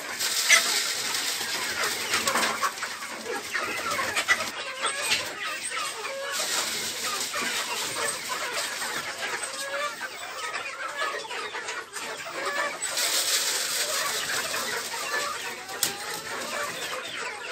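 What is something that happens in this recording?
A paper feed sack rustles.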